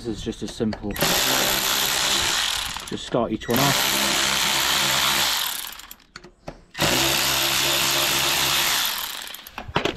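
A power drill whirs steadily in short bursts.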